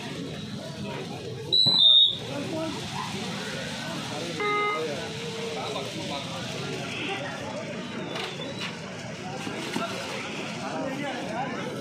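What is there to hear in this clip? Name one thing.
A large crowd of spectators chatters and calls out outdoors.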